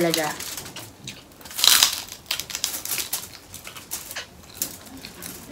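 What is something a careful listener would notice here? Foil crinkles and rustles as food is handled.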